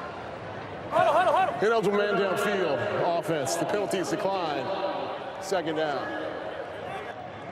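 A man announces a penalty over a stadium loudspeaker, echoing widely.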